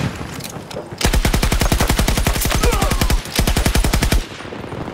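A machine gun fires a long, rapid burst at close range.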